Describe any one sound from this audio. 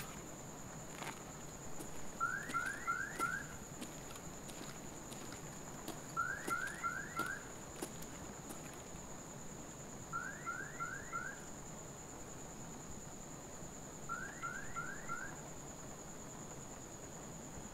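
Footsteps walk slowly across a hard floor indoors.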